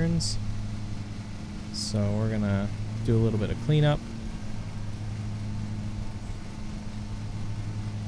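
A lawn mower engine hums steadily.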